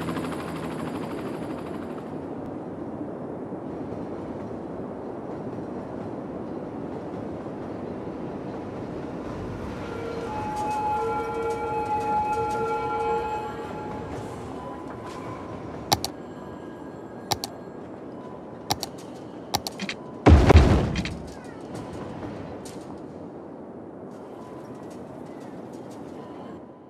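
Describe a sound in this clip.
Road traffic hums steadily in the distance.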